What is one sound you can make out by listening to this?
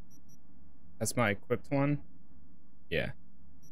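A young man speaks briefly and calmly into a close microphone.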